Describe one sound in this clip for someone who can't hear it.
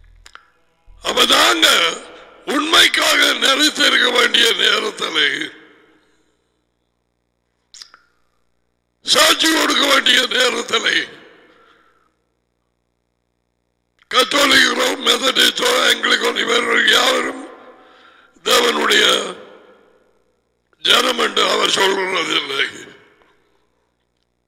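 A middle-aged man speaks with animation in bursts, close to a headset microphone.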